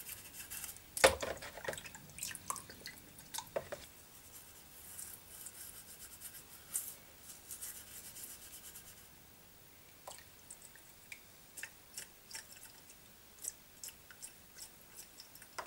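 Metal clinks against a plastic bowl.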